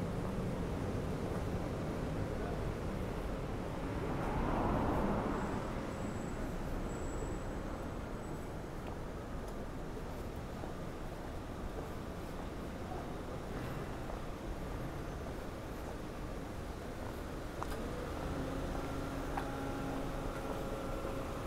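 Distant city traffic hums steadily.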